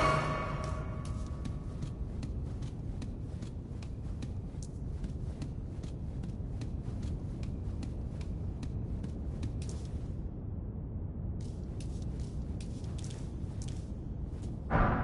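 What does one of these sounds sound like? Footsteps crunch steadily on rocky ground.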